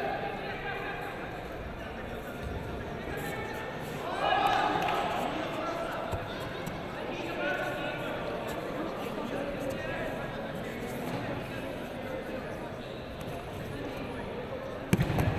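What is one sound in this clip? Bare feet shuffle and thump on a padded mat.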